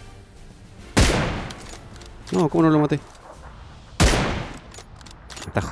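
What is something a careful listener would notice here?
A rifle fires loud single shots that echo away.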